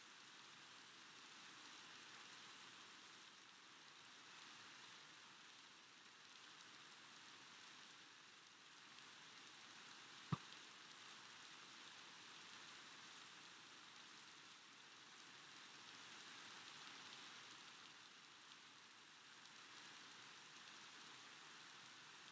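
Steady rain falls and hisses all around.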